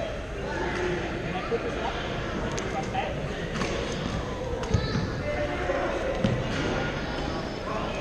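Shoes squeak on a hard court floor in a large echoing hall.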